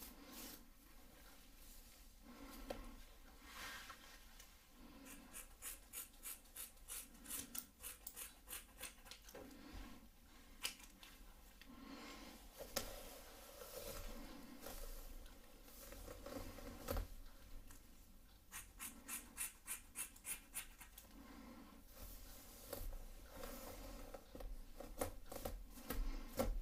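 Scissors snip through hair with quick, crisp clicks, close up.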